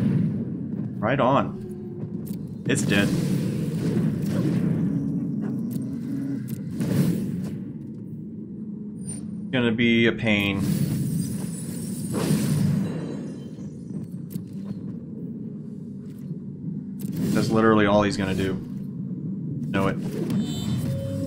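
Game sound effects whoosh and chime.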